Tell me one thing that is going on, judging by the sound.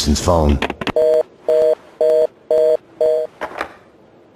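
Short tones beep through a telephone receiver.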